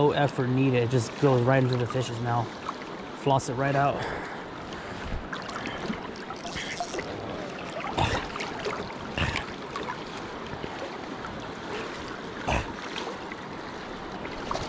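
River water rushes and laps steadily close by.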